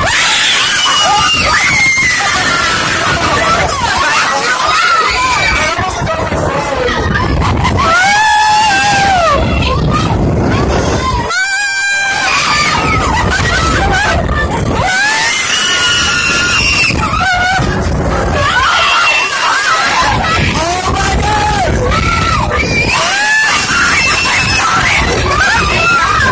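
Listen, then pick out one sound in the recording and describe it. Riders on a roller coaster scream and shout.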